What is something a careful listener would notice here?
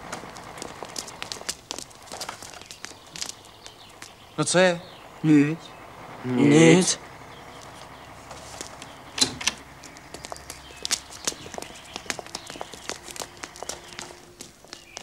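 Footsteps shuffle and clatter.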